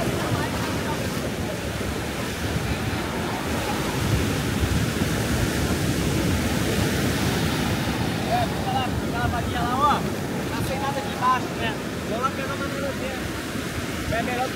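Waves wash onto the shore steadily.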